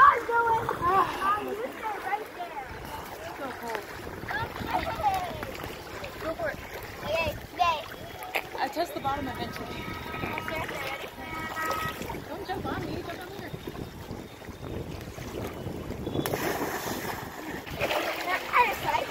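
A young girl talks excitedly nearby.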